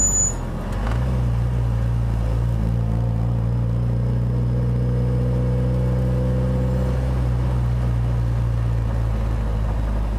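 A car engine idles low and steady.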